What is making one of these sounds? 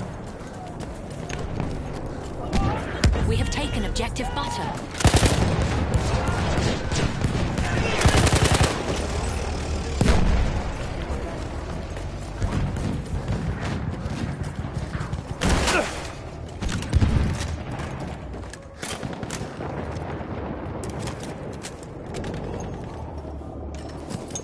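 Gunshots and explosions boom and crack at varying distances.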